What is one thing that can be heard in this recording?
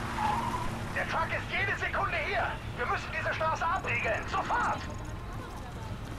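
A man shouts urgent orders over a radio.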